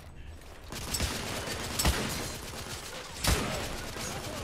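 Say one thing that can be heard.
A rifle fires loud shots that echo off stone walls.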